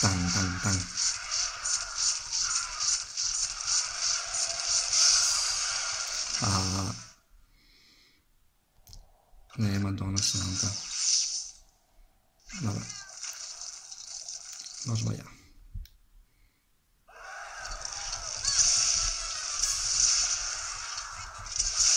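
Video game sounds play from a small handheld speaker.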